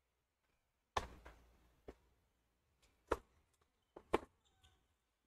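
A tennis ball bounces on a hard court several times.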